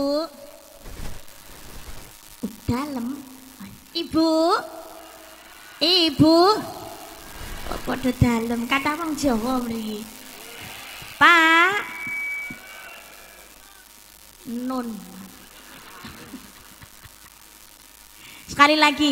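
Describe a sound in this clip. A young woman sings and speaks expressively into a microphone through loudspeakers, with pauses between phrases.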